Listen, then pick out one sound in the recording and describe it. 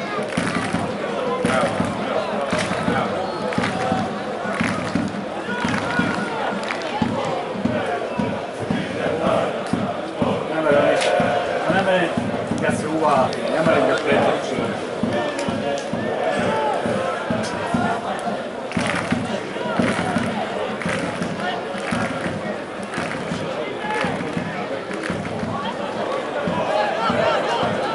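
Men shout to each other on an open outdoor pitch.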